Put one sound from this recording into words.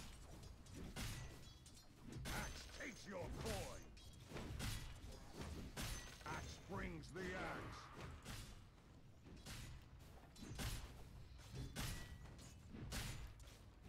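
Spell and sword effects clash and crackle in a fight.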